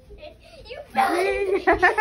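A young boy laughs close by.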